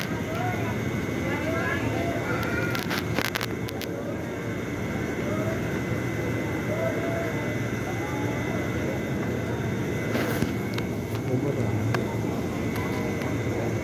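A crowd of people chatters on all sides.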